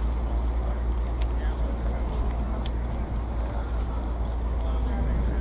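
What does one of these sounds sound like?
A crowd chatters at a distance outdoors.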